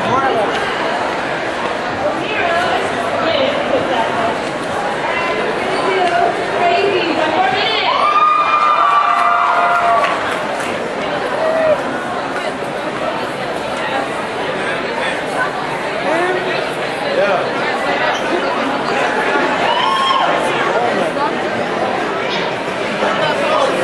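A large crowd chatters and calls out all around in a big echoing hall.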